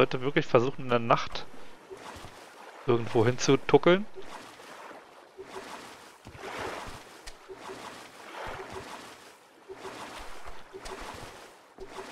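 Water laps and splashes against a small boat.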